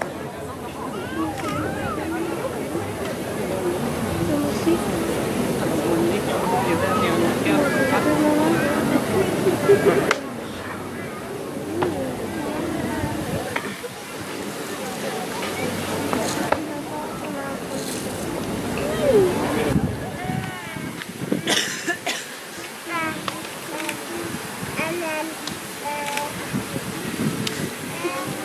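A crowd of onlookers chatters nearby outdoors.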